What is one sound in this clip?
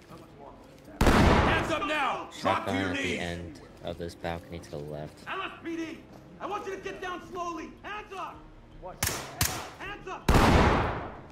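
A gun fires a loud shot that echoes in a room.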